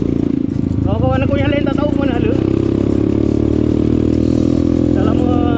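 A motorcycle engine hums and revs steadily up close.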